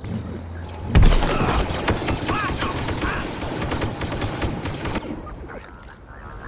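Blaster shots fire rapidly with sharp zaps.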